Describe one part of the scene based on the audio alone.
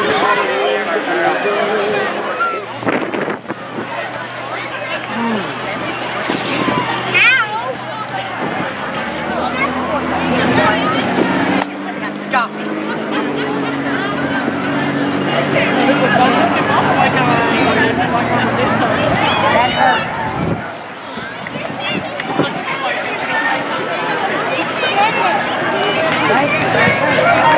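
A crowd of people chatter and call out outdoors, close by.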